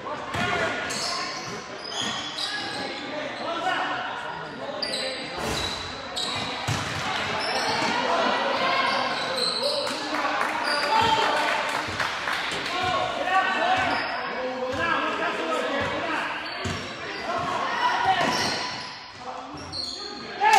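Sneakers squeak and thump on a wooden court in a large echoing gym.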